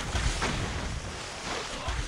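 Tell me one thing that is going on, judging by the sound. A waterfall roars.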